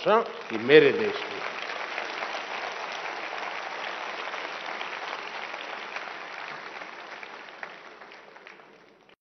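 A large audience applauds and cheers, slowly fading.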